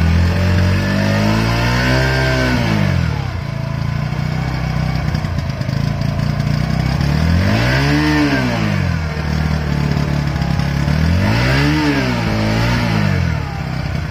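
A motorcycle engine revs up and falls back several times.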